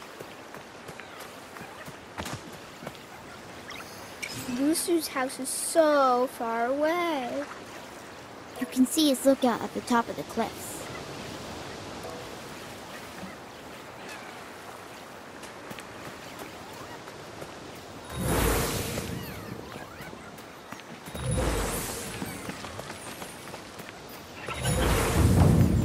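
Footsteps patter quickly on grass and dirt.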